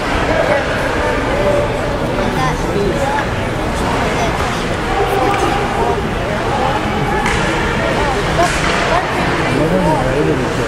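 Ice skates scrape and hiss across an ice rink.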